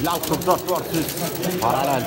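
Arcade buttons click rapidly as players press them.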